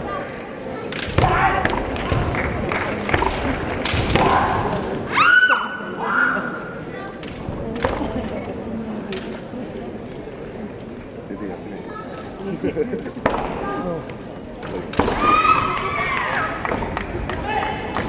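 Kendo fighters shout loud, sharp cries.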